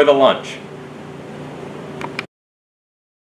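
A man speaks briefly to the listener, close by.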